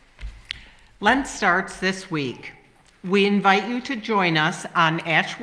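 A woman speaks clearly into a microphone in an echoing hall.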